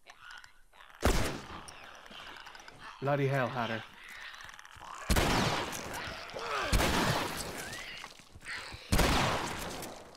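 Gunshots ring out loudly, one at a time.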